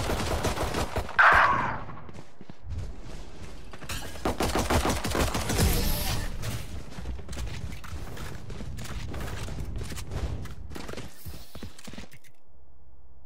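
Video game gunfire crackles in quick bursts.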